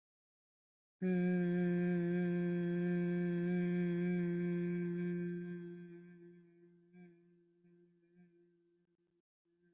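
A woman hums one long, steady note that slowly fades away.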